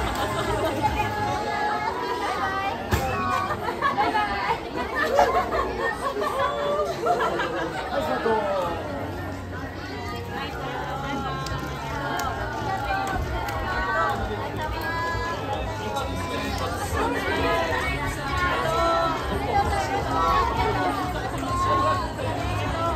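Many children and young women chatter and cheer excitedly.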